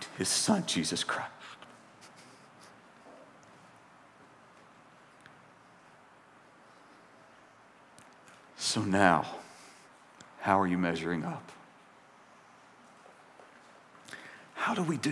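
A middle-aged man speaks into a microphone in short, deliberate phrases with long pauses.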